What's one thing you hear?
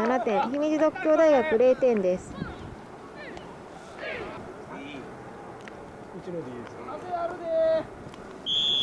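Young men shout to each other outdoors on an open field.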